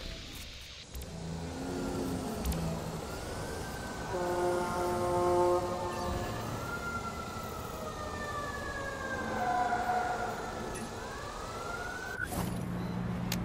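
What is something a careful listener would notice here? A small drone's rotors whir with a shifting whine.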